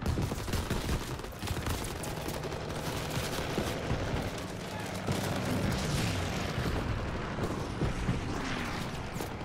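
Gunfire crackles in rapid bursts nearby.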